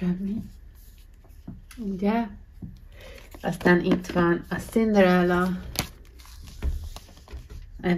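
A hand shifts stiff cardboard cases with soft taps and rustles.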